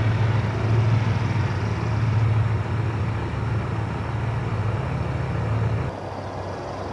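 A car engine hums steadily as it drives along a road.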